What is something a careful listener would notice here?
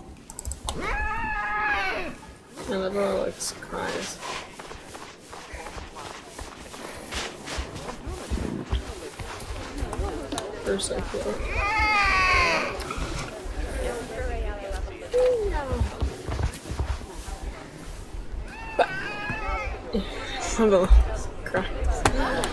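A snow leopard cub calls out with high, wavering mews.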